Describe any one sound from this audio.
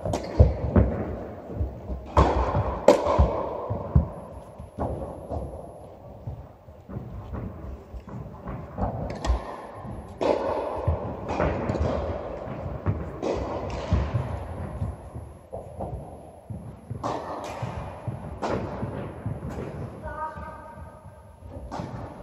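Tennis balls are struck with rackets in a large echoing hall.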